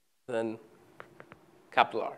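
Chalk taps on a blackboard.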